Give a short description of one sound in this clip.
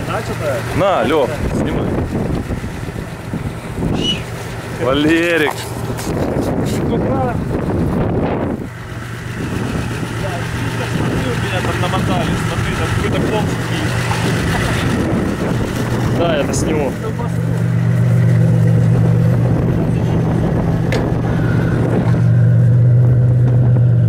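A vehicle engine idles close by, growing louder toward the end.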